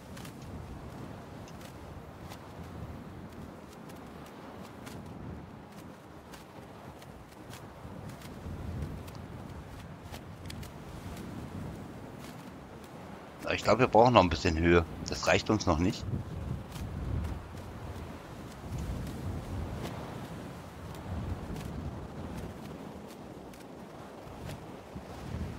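Wind rushes steadily past while gliding through the air.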